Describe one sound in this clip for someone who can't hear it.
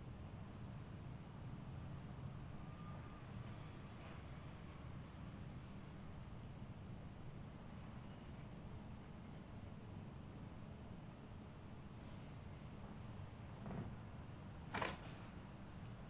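Hands rub and press softly on bare skin.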